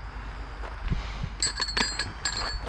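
Tools rattle in a plastic crate.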